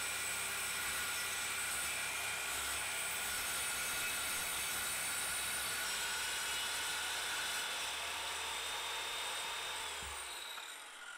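A circular saw whines as it cuts through wood.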